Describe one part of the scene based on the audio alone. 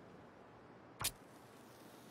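A match strikes and flares briefly.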